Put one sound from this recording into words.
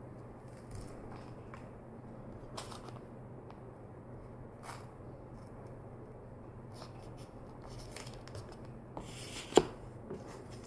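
Hands rustle and tap on a plastic case.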